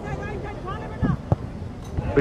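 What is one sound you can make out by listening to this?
A foot kicks a football with a thump.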